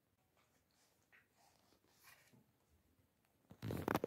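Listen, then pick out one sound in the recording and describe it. Paper pages rustle as a book's pages are turned.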